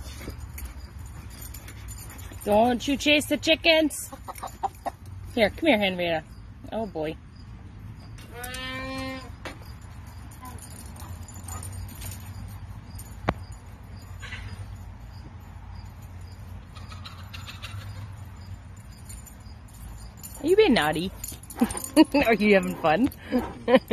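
A large dog runs across grass with soft thudding footsteps.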